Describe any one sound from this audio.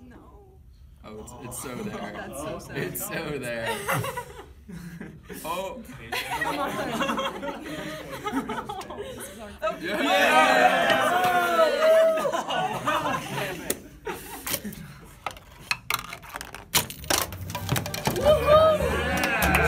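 Young people talk and laugh close by.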